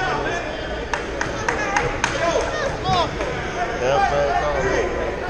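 Spectators chatter in the background.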